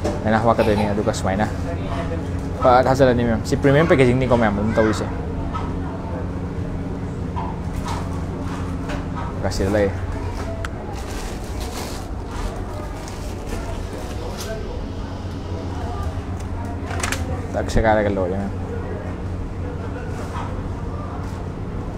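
A plastic bag crinkles and rustles as hands fold and seal it.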